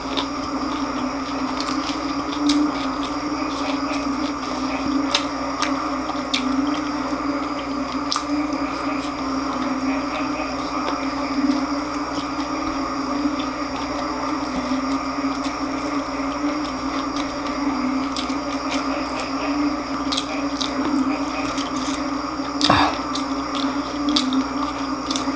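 A man chews crunchy fried food noisily, close up.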